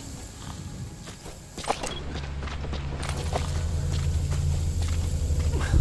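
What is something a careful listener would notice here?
Footsteps crunch softly on dry dirt and grass.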